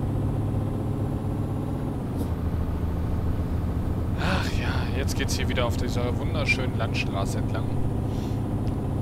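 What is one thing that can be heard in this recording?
A diesel truck engine drones while cruising on a road.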